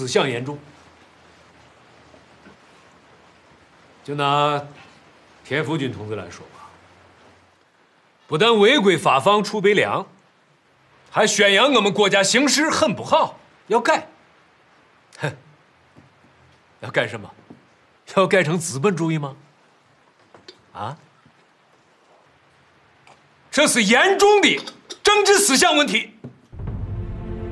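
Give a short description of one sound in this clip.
A middle-aged man speaks firmly and sternly nearby.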